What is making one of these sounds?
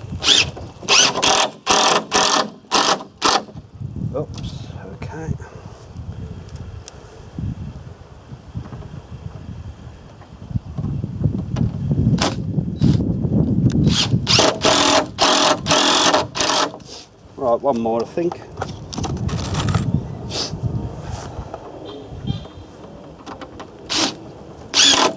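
A cordless drill whirs in short bursts as it drives screws into wood.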